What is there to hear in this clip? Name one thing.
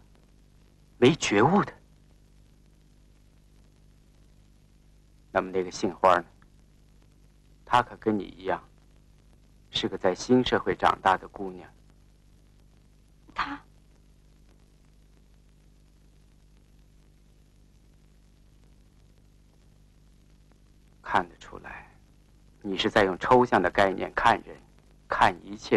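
A man speaks in a low, earnest voice close by.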